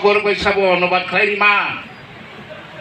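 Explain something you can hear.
A man speaks loudly through a loudspeaker in an echoing hall.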